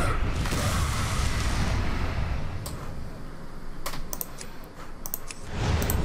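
A card flips up with a soft chime.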